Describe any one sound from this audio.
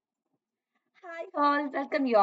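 A young woman speaks into a close microphone.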